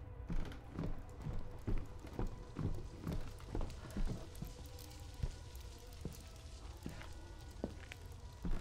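Footsteps thud steadily on hard stairs.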